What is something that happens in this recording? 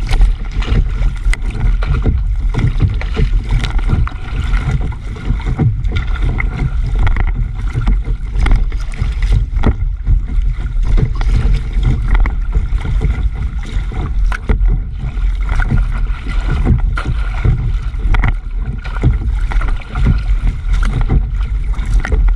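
Water splashes and rushes against the side of a fast-moving boat.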